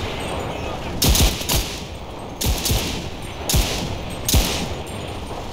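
A rifle fires several loud, sharp shots.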